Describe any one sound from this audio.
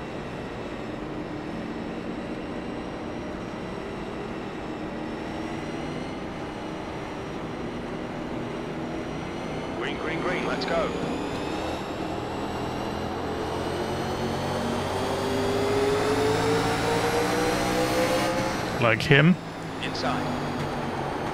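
A race car engine roars steadily and rises in pitch as it speeds up.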